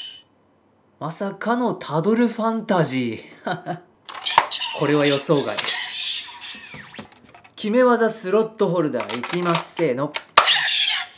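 A recorded man's voice calls out energetically from a toy's small speaker.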